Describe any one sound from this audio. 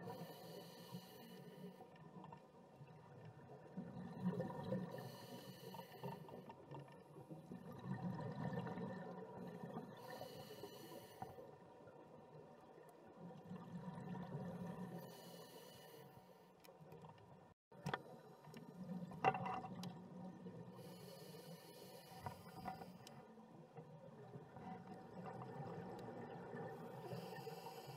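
Scuba bubbles burst and gurgle underwater in regular breaths.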